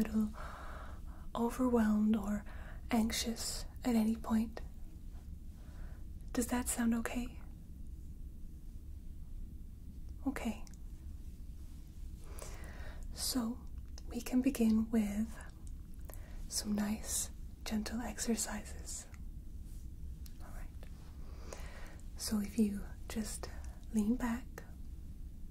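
A young woman speaks softly and calmly, close to the microphone, with pauses.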